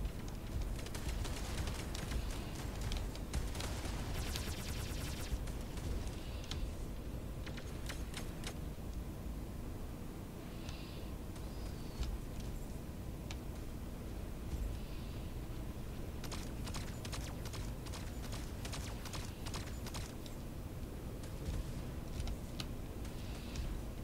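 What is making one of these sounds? Rapid gunfire bursts from a game weapon.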